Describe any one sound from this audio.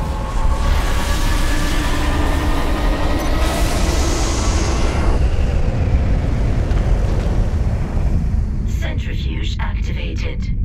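A deep mechanical rumble drones steadily.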